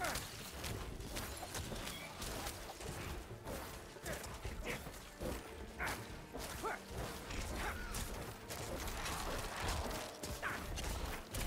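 Weapons strike and slash at monsters again and again.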